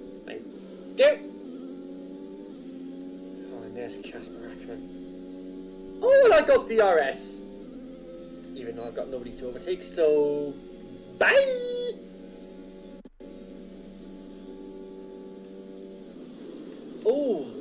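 A young man speaks with animation through a microphone.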